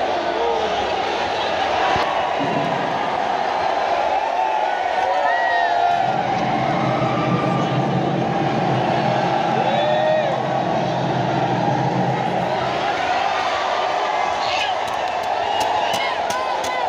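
A large crowd cheers and chants loudly in a big echoing hall.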